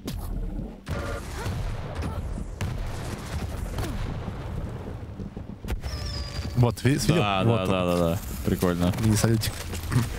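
An electric weapon crackles and hums.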